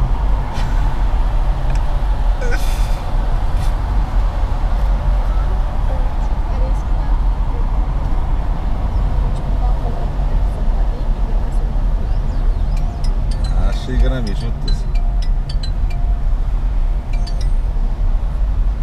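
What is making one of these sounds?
A car's engine and tyres rumble steadily on a highway.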